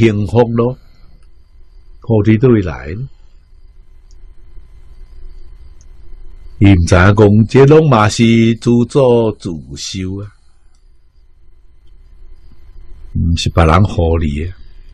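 An elderly man speaks calmly and warmly into a close microphone, with pauses.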